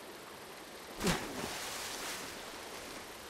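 A body splashes heavily into water.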